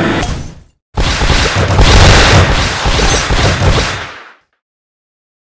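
A game power-up explodes with a loud crashing blast.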